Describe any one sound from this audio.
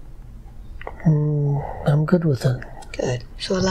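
An elderly man speaks slowly and softly, close to the microphone.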